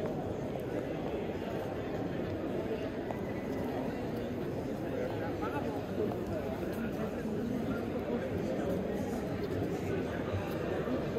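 Footsteps tap on paving as people walk past.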